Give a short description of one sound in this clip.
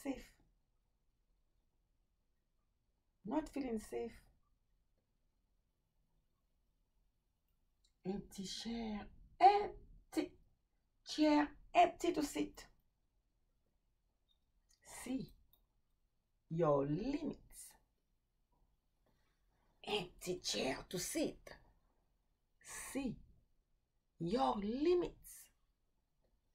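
A woman speaks calmly and expressively to a nearby microphone, in short bursts with pauses.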